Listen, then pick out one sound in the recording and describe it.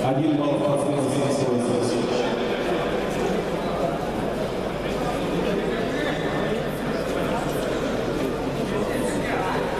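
Men talk in a large echoing hall.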